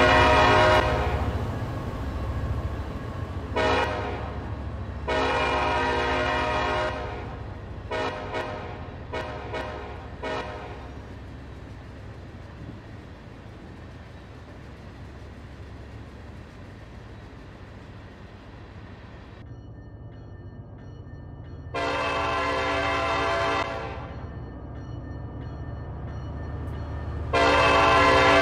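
A diesel engine rumbles low and steady.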